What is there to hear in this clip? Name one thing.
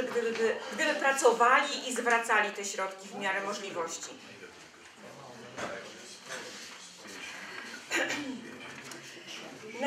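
A middle-aged woman speaks clearly.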